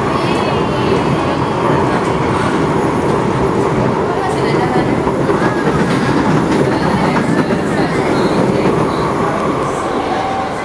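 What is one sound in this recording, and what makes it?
Wheels clatter over rail joints.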